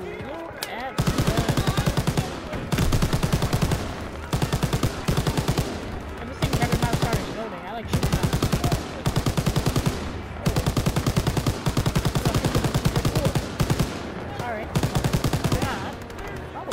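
A heavy machine gun fires long, rapid bursts.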